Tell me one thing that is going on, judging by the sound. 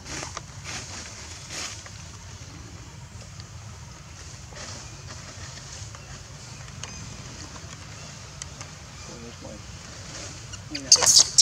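A plastic cup crinkles and rattles as a baby monkey handles it.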